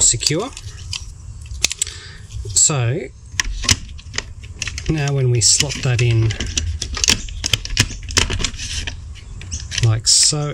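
Plastic toy parts click and rattle as they are handled up close.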